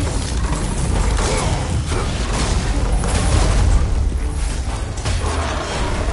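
Flaming blades whoosh through the air.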